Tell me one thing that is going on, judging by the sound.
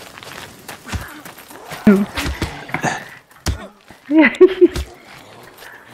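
Heavy blows thud in a short scuffle.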